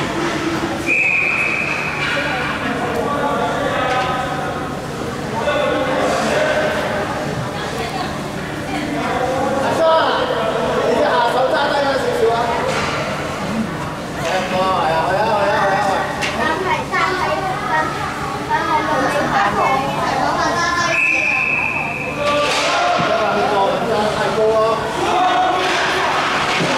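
Children shout and call out across the ice.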